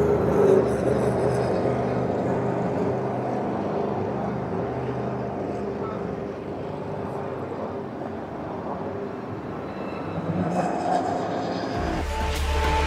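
Racing car engines roar and whine in the distance.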